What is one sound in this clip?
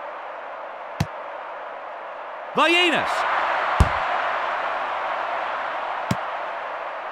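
A football is kicked with short thuds.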